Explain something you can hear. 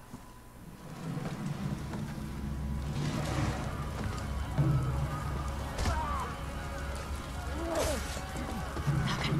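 A fire roars with a low rumble.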